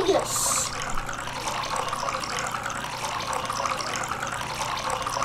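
Liquid pours and splashes steadily.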